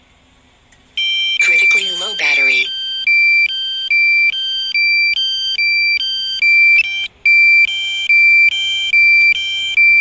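An electronic warning beeps in a steady, repeating pattern.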